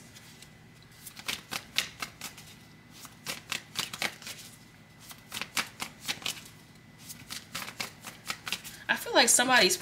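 Playing cards riffle and flick as a deck is shuffled by hand.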